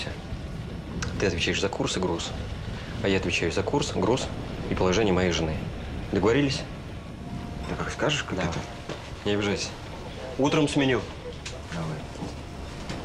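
A second man answers in a low, calm voice nearby.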